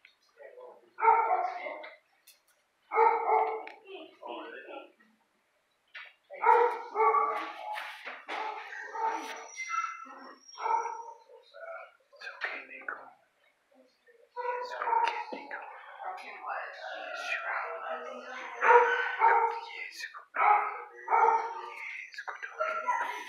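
A dog barks repeatedly nearby.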